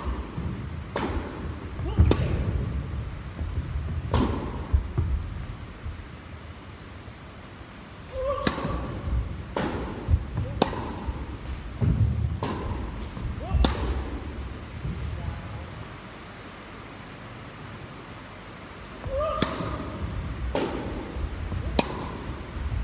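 A tennis racket strikes a ball with sharp pops, echoing in a large hall.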